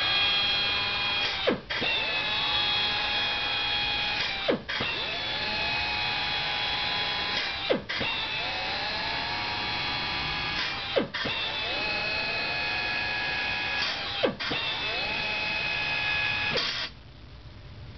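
An electric drill whines steadily at high speed, briefly dipping every few seconds, then stops.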